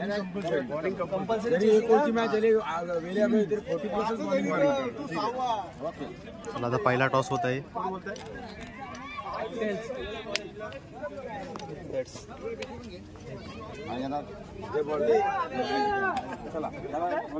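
Several young men chatter and call out nearby.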